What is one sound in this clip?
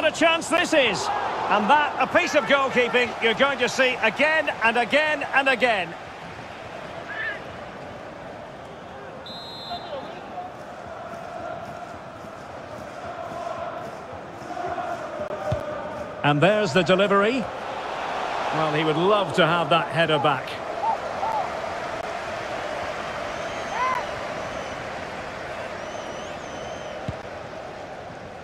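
A large stadium crowd murmurs and roars steadily in the distance.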